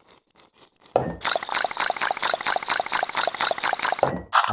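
A sauce bottle squirts with a rapid sputtering sound.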